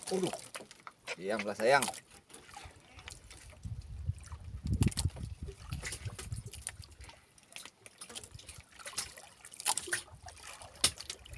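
A fishing net rustles as fish are pulled from it.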